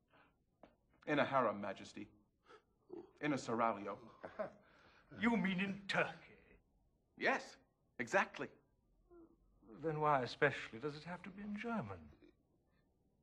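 An older man speaks calmly.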